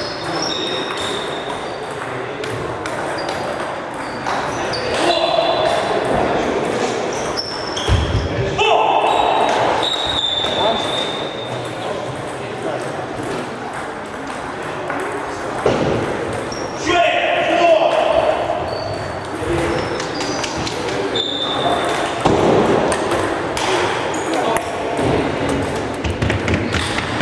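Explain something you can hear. Ping-pong balls click against paddles and tables in a large echoing hall.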